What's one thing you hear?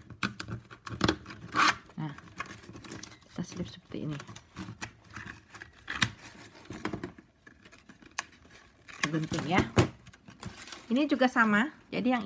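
Plastic strapping band rustles and crinkles as hands weave it.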